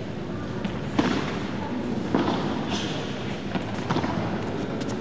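A racket strikes a ball with sharp pops.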